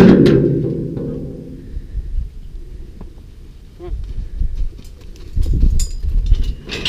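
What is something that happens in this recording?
Wind rumbles outdoors.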